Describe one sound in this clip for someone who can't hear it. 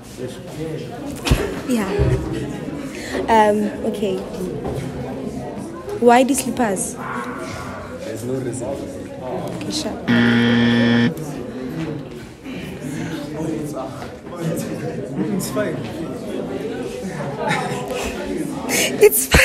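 A young woman asks questions close by with animation.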